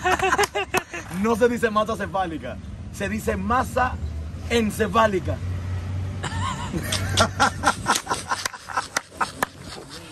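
A man laughs loudly up close.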